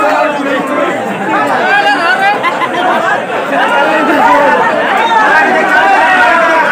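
A crowd of spectators shouts and cheers loudly outdoors.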